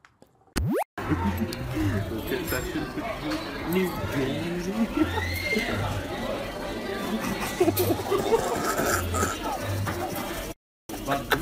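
Young men talk loudly nearby in a noisy room.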